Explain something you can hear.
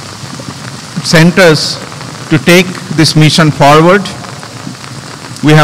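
A middle-aged man speaks calmly into a microphone over a loudspeaker outdoors.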